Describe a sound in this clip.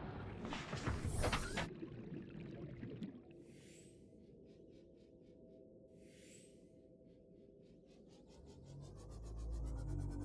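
A small submarine's motor hums and whirs underwater.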